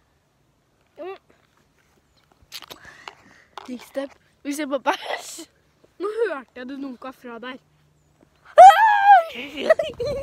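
A young girl talks animatedly close by.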